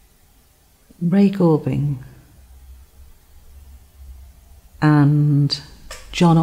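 An elderly woman speaks expressively and close to a microphone.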